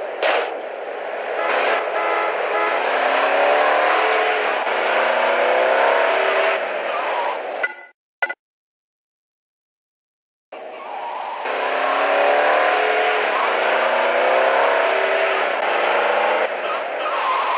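A car engine revs, rising and falling as the car drives.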